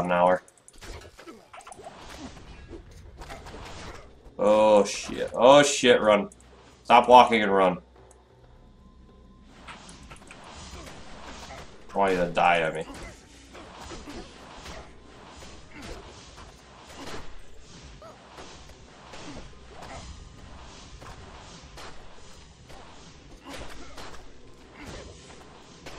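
Video game combat sound effects clash and crackle.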